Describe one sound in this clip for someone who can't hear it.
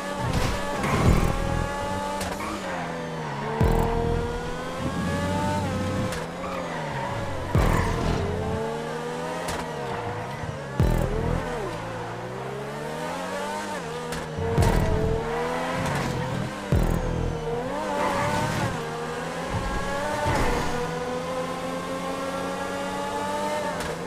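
A race car engine roars and revs up and down through gear changes.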